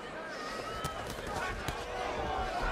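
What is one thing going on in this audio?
Boxing gloves land punches with sharp smacks.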